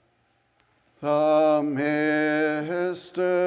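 An elderly man chants loudly through a microphone in a large echoing hall.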